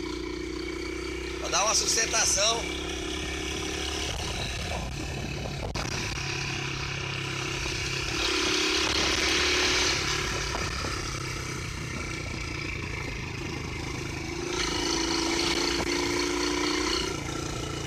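A 150cc single-cylinder motorcycle engine hums while riding along a dirt road.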